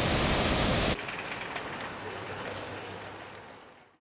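A metal shopping cart rattles as it rolls over pavement.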